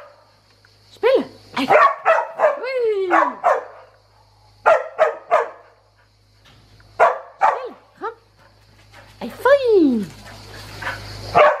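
A puppy whines in high, sliding cries.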